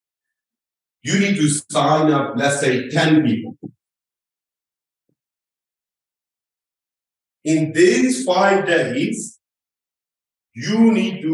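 A man speaks calmly and clearly into a close microphone, pausing now and then.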